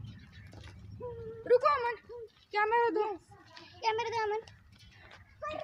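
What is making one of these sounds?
A young child shouts loudly and excitedly nearby.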